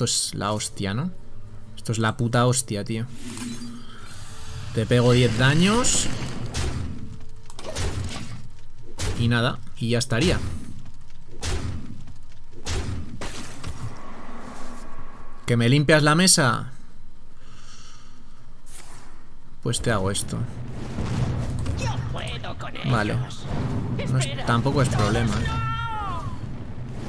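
Magical game sound effects chime and whoosh as cards are played.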